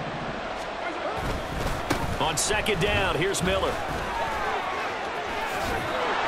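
Football players collide with thuds and crunches.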